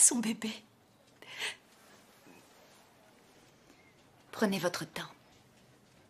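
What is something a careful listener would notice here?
A young woman speaks tearfully, close by.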